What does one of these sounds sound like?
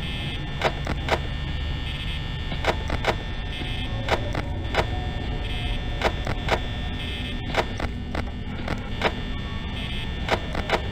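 A desk fan whirs steadily.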